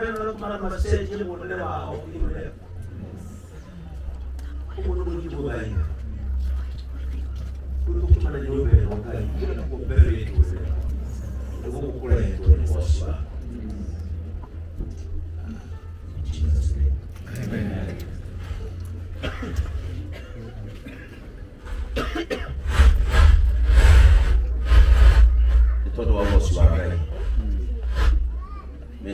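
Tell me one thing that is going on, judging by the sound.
A crowd of men and women talks and murmurs all around, close by.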